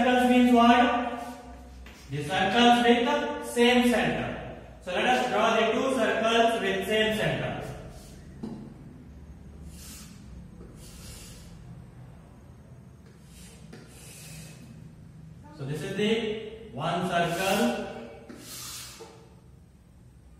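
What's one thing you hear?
A man speaks calmly and clearly in a room with some echo.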